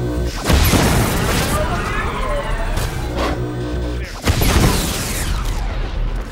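A loud whooshing blast rushes past.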